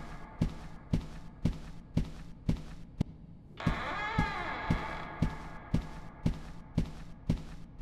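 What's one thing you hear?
Footsteps thud at an even walking pace.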